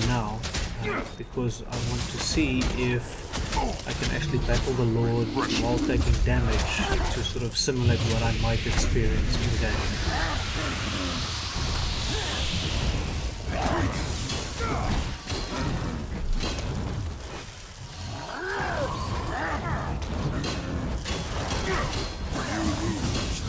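Weapons clash and strike repeatedly in a fight.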